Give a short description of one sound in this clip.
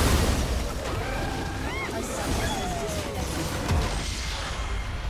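Game spells crash and explode in a loud fight.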